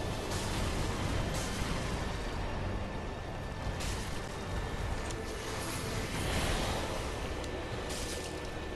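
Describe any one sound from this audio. A huge beast growls and stomps heavily.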